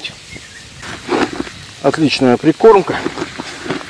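Hands stir crumbly bait in a plastic bucket.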